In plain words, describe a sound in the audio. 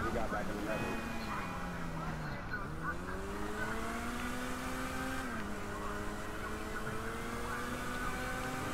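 An engine roars and revs up through its gears as a vehicle speeds along a road.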